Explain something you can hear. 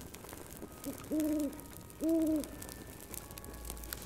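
An owl's wings flap as it flies.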